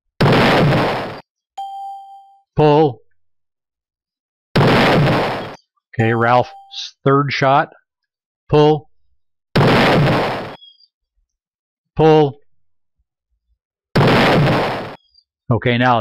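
A shotgun blast booms several times.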